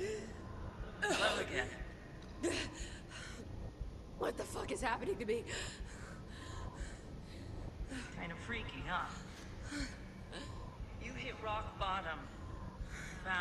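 A woman speaks calmly and mockingly, close by.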